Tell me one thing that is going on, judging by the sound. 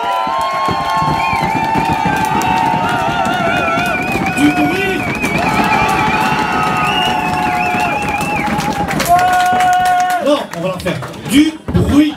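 Live band music plays loudly through speakers.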